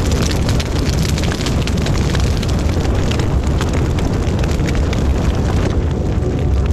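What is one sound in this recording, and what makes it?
Flames crackle and pop as a grass fire burns.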